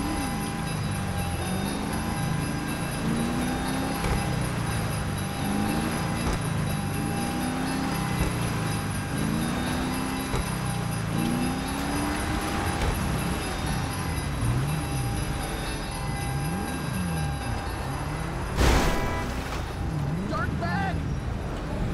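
A car engine revs up and down steadily.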